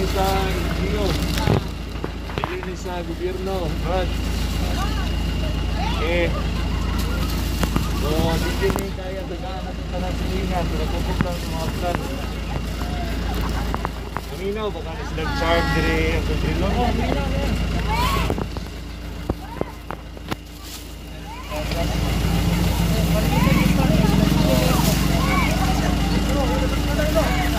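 Several men and women talk at once nearby, outdoors.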